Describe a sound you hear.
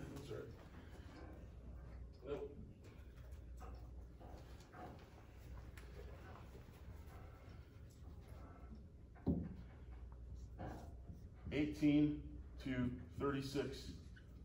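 A man speaks calmly, a little distant in a room.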